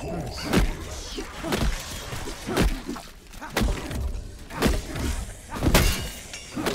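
A heavy blunt weapon smacks into flesh again and again, about once a second.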